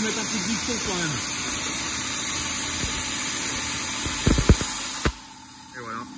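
A plasma cutter hisses loudly as it cuts through steel, then stops abruptly.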